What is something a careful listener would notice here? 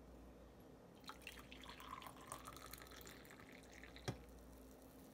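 Coffee pours into a mug.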